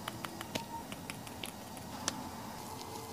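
Liquid drips from a plastic bottle onto a cotton pad.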